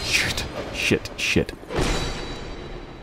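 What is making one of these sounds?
Blades slash and strike sharply in quick succession.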